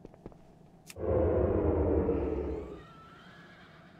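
A magic spell whooshes and rumbles loudly.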